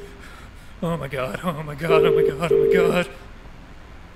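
A young man speaks anxiously into a phone.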